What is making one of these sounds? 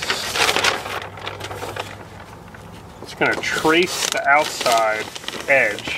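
Stiff paper rustles and crinkles as it is handled.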